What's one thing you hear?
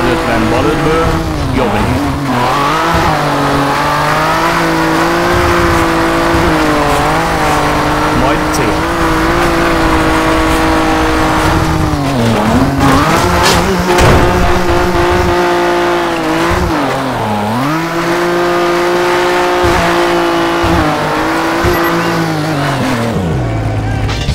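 A rally car engine roars loudly, revving up and dropping as it shifts gears.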